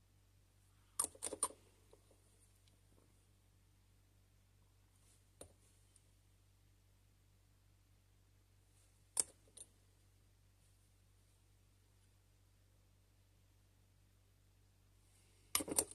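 Small plastic parts click and tap together.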